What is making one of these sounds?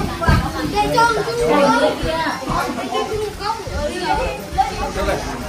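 Several young men and women chat with animation close by.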